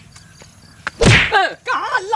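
A man cries out loudly close by.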